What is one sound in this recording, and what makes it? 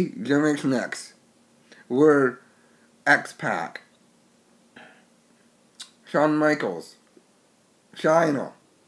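A middle-aged man speaks close to a microphone in short, deliberate bursts with pauses between them.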